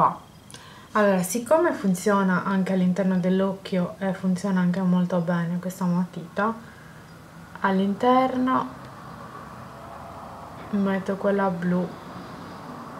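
A young woman speaks calmly, close to the microphone.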